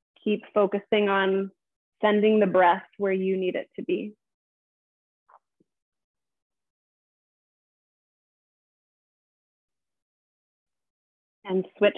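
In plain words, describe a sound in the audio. A woman speaks calmly through a microphone, giving instructions.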